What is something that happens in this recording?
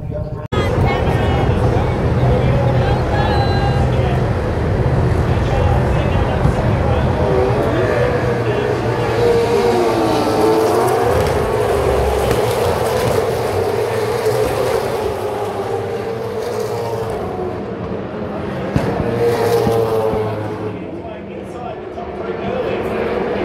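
Racing car engines roar loudly, rising and falling in pitch as they speed past.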